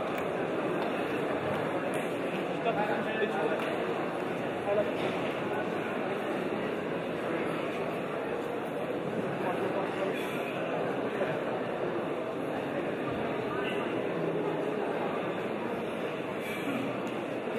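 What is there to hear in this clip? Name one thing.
A large indoor crowd cheers and chatters steadily, echoing in a big hall.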